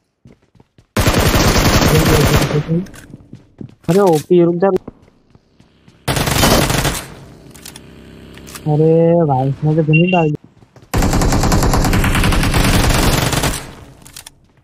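A rifle fires rapid bursts of automatic gunfire.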